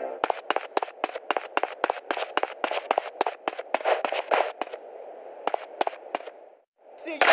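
A rifle fires in rapid bursts of gunshots.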